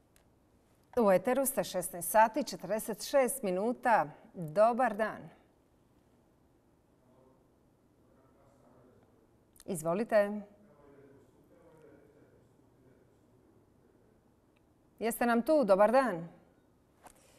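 A middle-aged woman speaks calmly into a microphone, in short bursts.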